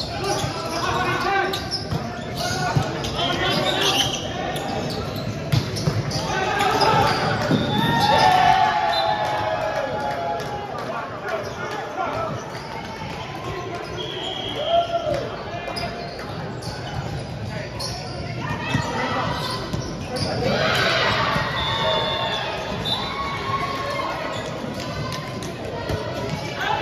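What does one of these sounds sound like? Players call out and shout to each other in a large echoing hall.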